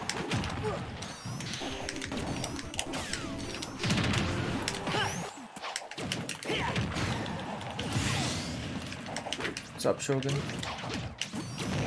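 Hits and blasts crack and whoosh in a fighting video game.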